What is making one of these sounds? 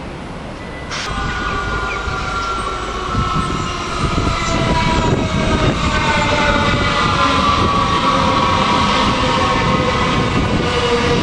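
An electric train passes close by with a high whine from its motors.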